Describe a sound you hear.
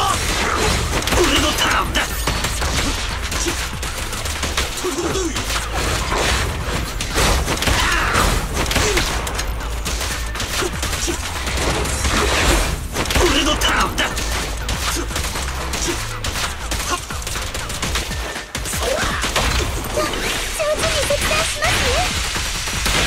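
Blows and impacts land again and again in a fast fight.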